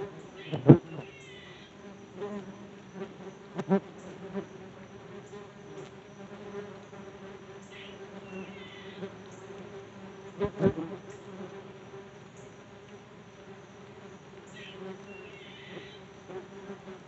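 A small bird chirps in quick bursts in the treetops.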